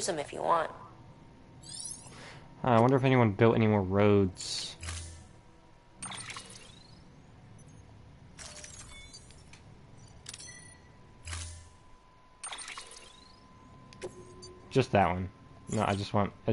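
Electronic menu sounds blip and chime.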